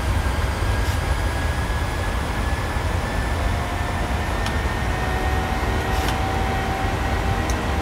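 A jet engine drones steadily and low.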